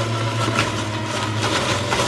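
A wooden pusher knocks against a juicer chute.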